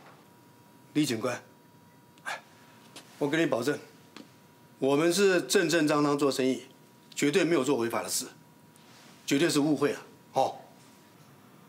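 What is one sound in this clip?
An older man speaks earnestly, close by.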